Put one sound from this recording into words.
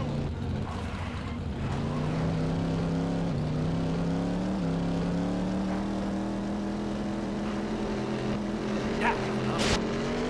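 Tyres skid and scrape over sand and dirt.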